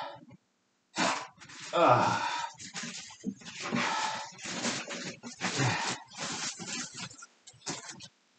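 A man rummages through things nearby, with rustling and knocking.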